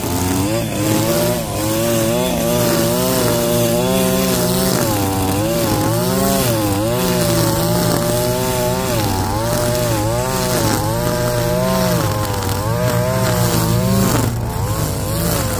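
A string trimmer engine whines loudly while cutting grass.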